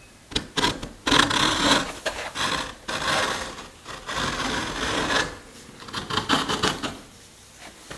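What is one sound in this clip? A marking gauge scrapes along the wood with a dry scratching.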